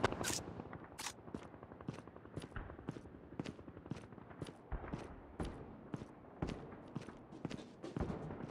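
Footsteps thud at a quick, steady pace on hard ground.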